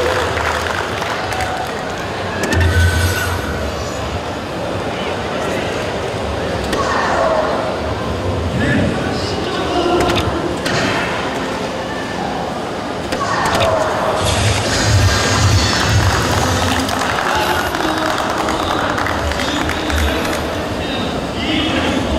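Darts thud into an electronic dartboard.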